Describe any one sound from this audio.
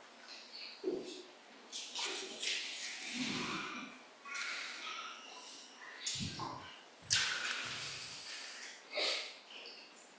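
Footsteps move across the floor.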